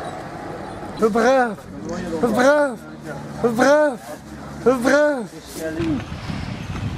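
An elderly man makes loud wordless vocal sounds close by.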